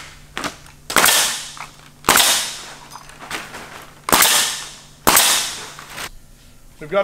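A pneumatic nail gun fires with sharp hissing bangs.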